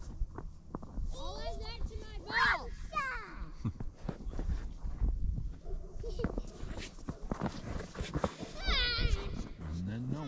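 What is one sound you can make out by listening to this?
A child calls out from a distance outdoors.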